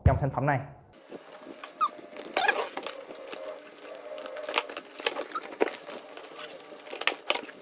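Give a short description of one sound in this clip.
Packing tape tears and crackles as it is peeled off a cardboard box.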